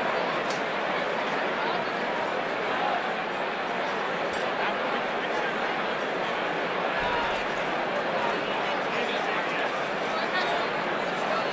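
A large crowd of men and women chatters loudly in a big echoing hall.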